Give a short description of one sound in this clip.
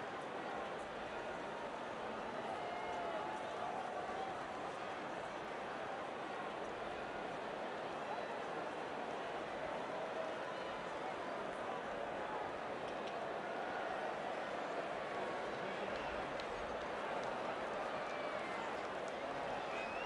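A large crowd cheers and murmurs steadily in a big open stadium.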